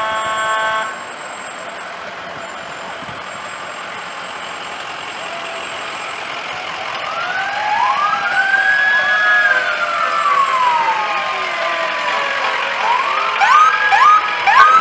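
Vehicle engines hum as they drive slowly past.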